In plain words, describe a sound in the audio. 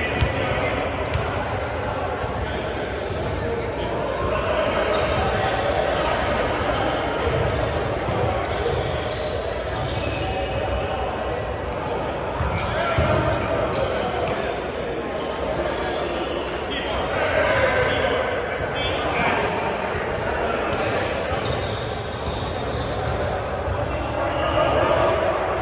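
Young men talk and call out across a large echoing gym.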